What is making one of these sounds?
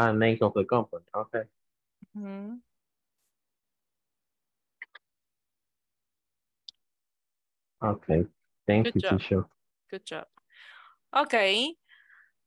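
An adult speaks over an online call.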